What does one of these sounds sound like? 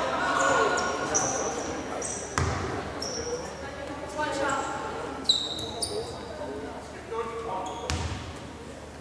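Young women call out to each other across the court.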